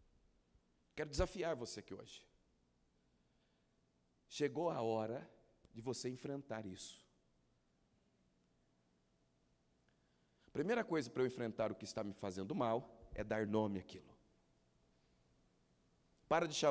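A man speaks into a microphone with pauses, heard through loudspeakers in a large room.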